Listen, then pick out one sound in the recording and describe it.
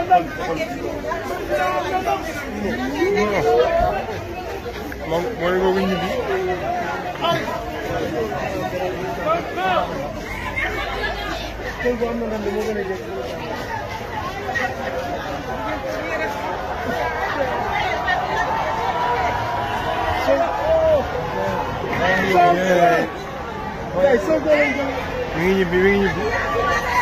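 A crowd of men chatters and calls out loudly outdoors.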